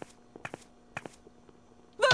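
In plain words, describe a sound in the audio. Footsteps tap lightly.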